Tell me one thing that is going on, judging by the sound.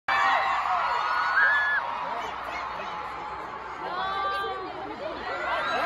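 A large crowd screams and cheers loudly in a big venue.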